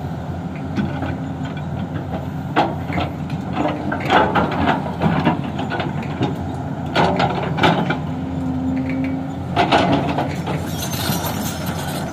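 A diesel tracked excavator engine rumbles under load.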